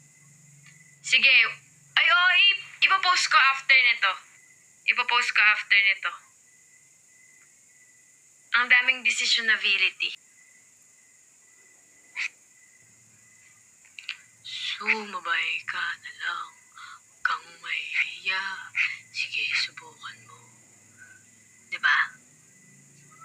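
A young woman talks casually and close to a microphone, with pauses.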